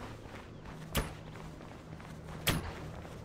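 Heavy footsteps thud on a stone path.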